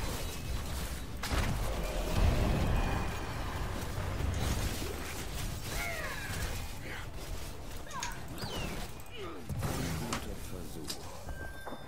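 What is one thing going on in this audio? Magic blasts and explosions crackle and boom in a fast fight.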